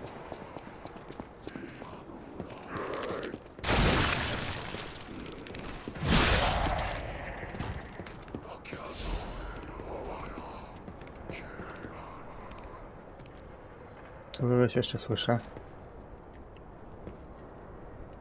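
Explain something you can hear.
Footsteps crunch over loose gravel.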